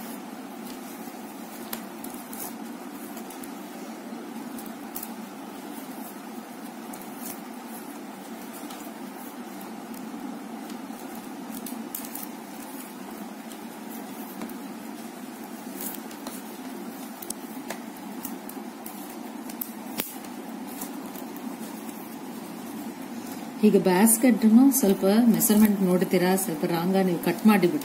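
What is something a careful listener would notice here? Plastic strips rustle and tick softly as they are woven by hand.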